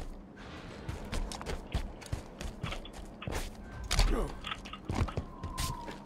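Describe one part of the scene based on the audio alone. A rifle fires in short, sharp bursts.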